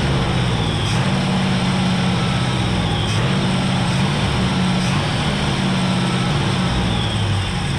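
A truck engine idles steadily up close.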